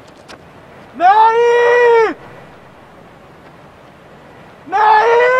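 A man shouts loudly outdoors.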